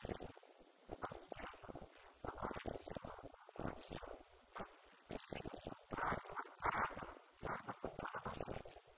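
An elderly man speaks calmly into a microphone, heard through a loudspeaker in an echoing room.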